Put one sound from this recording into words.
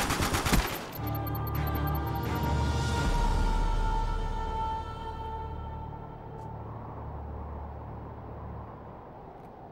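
A short triumphant fanfare plays and fades.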